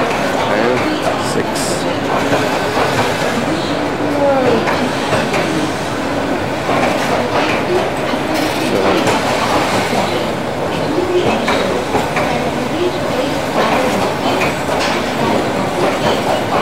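A train rolls past with a steady rumble and clatter.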